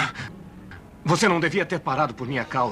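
A man groans and cries out in pain.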